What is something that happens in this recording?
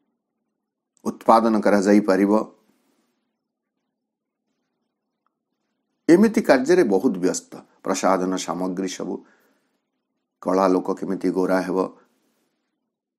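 A middle-aged man speaks calmly and close, with pauses.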